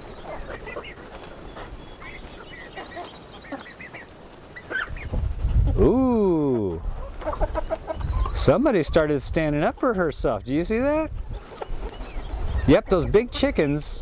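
Hens cluck and chirp softly.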